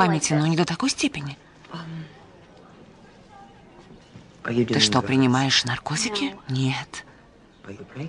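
An older woman speaks earnestly close by.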